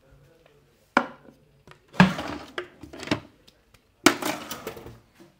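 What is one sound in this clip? Metal tools clatter and rattle in a drawer.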